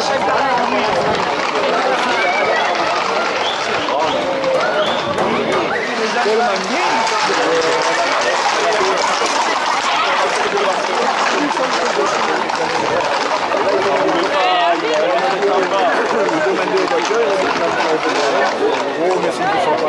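Horses' hooves clatter on the road.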